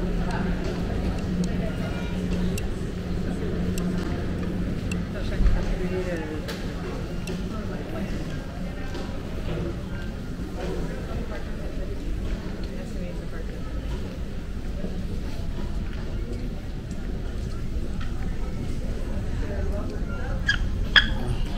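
A steady low hum fills a large indoor space.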